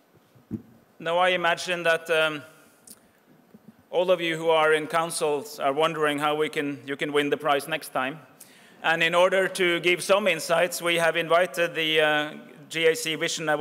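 A man speaks calmly through a microphone into a large hall.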